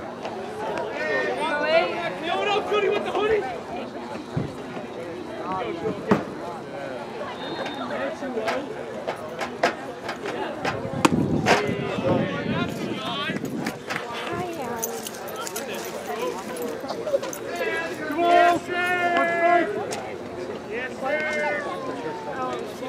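Young men shout chatter across an open field outdoors.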